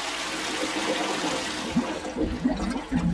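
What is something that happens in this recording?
Water swirls and rushes as a toilet flushes.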